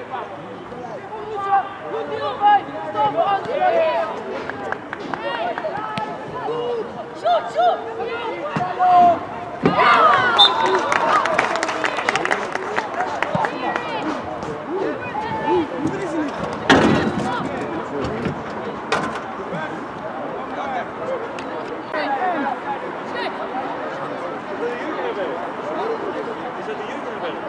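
Young men shout and call out across an open football pitch outdoors.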